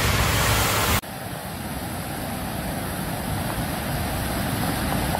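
Muddy floodwater roars and churns in a torrent.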